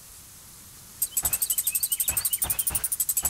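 Small items spill onto the ground with a rapid chiming.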